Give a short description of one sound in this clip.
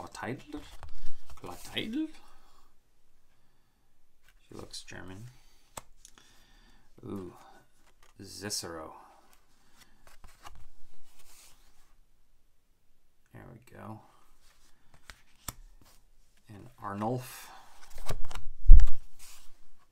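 Stiff cards slide and rustle against each other.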